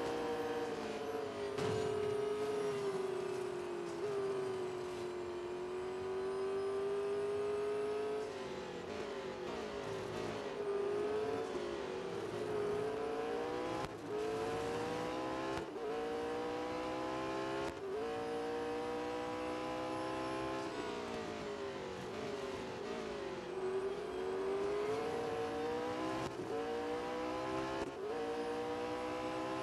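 A high-revving race car engine whines, rising through the gears and dropping as it shifts.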